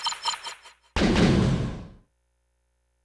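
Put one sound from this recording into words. An electronic hit rings out with a rumble.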